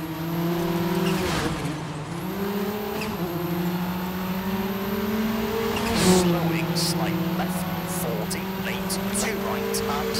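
Gravel crunches and pings under the car's tyres.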